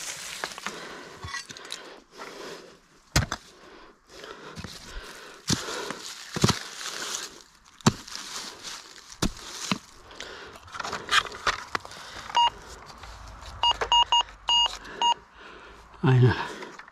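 Dry leaves and gravel crunch and rustle underfoot.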